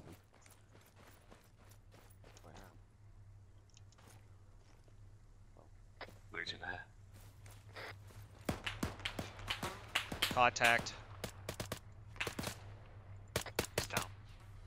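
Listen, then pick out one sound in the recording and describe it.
Footsteps crunch and tap on grass and pavement.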